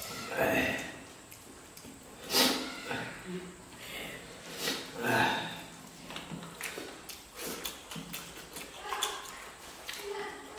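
Hands squish and mix food with soft wet sounds.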